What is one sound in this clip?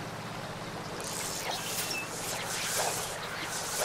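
A fishing line whirs out as it is cast.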